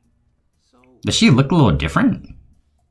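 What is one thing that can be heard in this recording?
A young man speaks with animation and close by.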